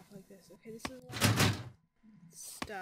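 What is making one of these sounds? A locked door rattles briefly in its frame.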